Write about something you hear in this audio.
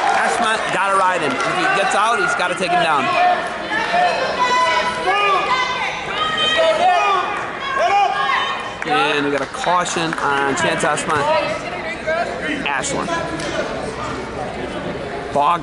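Spectators shout encouragement loudly in an echoing hall.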